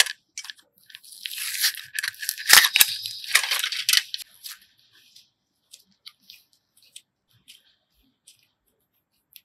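Soft clay squishes and crinkles between fingers.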